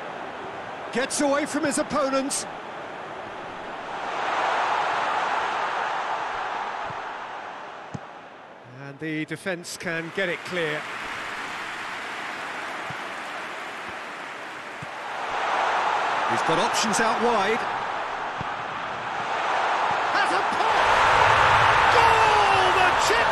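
A large stadium crowd roars, swelling and fading in waves.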